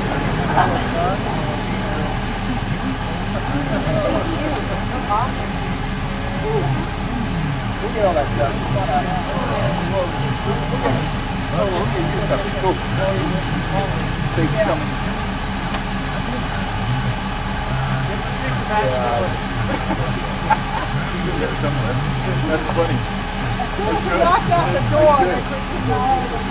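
A group of men and women talk and chatter nearby outdoors.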